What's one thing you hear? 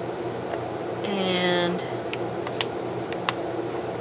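A hand presses and rubs a sticker onto paper.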